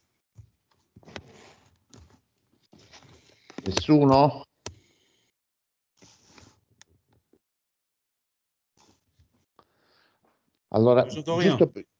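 A man speaks in short bursts with pauses, heard through an online call.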